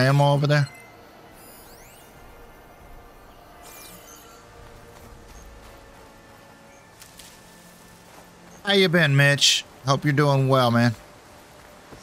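An older man talks into a microphone with animation, in short bursts.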